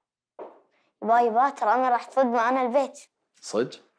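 A boy speaks brightly and cheerfully nearby.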